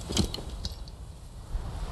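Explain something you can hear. Armour clinks and rattles as a warrior moves.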